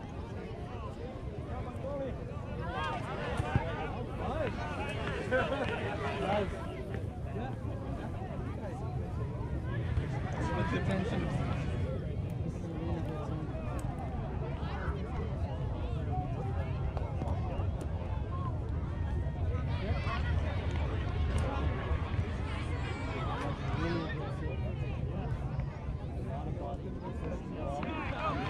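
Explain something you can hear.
A crowd of adults chats nearby outdoors.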